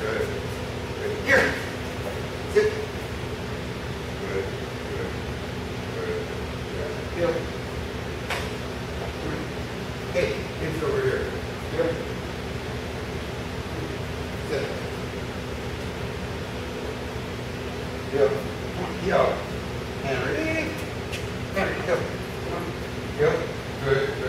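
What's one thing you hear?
A man speaks calmly to a dog.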